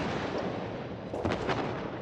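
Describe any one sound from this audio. A shell explodes with a loud blast.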